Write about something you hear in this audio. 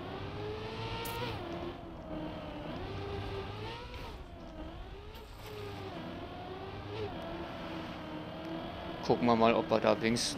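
A racing car engine hums steadily, its pitch rising and falling as the car speeds up and slows down.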